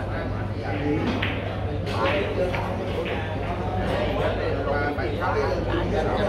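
Several men chatter nearby in a busy room.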